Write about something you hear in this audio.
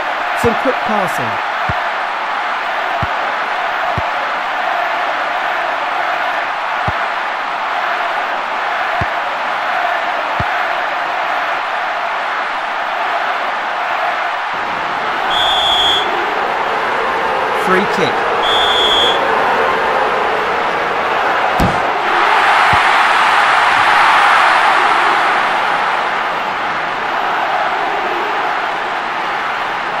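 A stadium crowd roars steadily, swelling louder for a few seconds.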